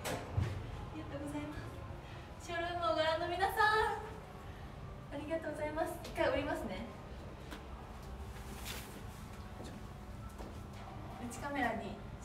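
A young woman speaks brightly and with animation close by.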